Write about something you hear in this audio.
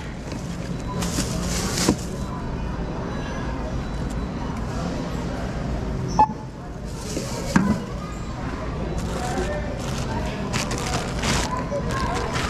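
Plastic bags rustle and crinkle as groceries are handled.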